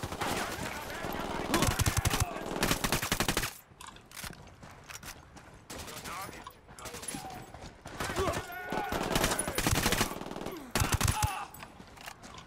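Gunfire bursts out in quick, loud shots.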